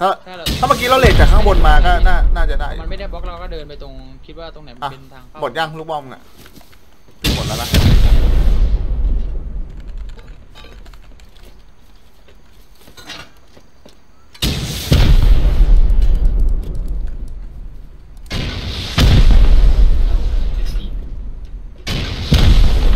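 Explosions boom and rumble, then fade.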